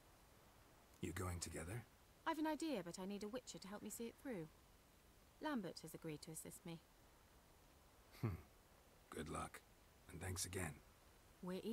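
A man speaks in a low, calm voice close by.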